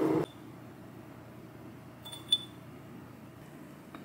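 A spoon clinks against a jar.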